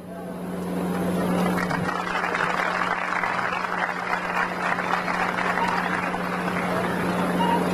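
A large outdoor crowd applauds steadily.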